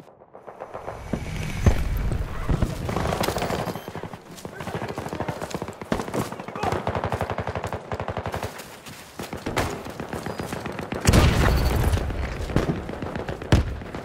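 Footsteps crunch quickly over snow and gravel.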